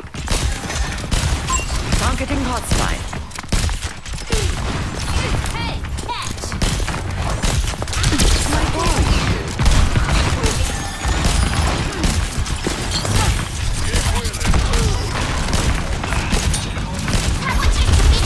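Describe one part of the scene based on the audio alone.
A rifle fires in quick bursts, with sharp cracks.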